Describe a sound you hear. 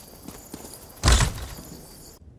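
A heavy wooden door thuds open.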